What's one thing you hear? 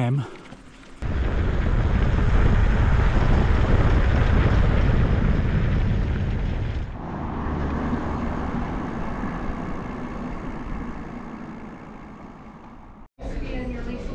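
Wind rumbles and buffets loudly against the microphone while riding.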